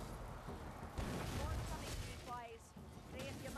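A blade swings and slashes.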